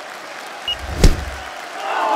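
A boxing glove lands a punch with a sharp smack.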